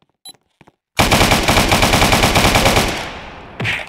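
A rifle fires a rapid, loud burst of shots.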